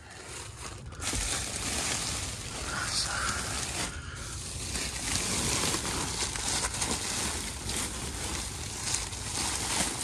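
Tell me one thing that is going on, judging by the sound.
Foil ductwork crinkles and rustles under a hand.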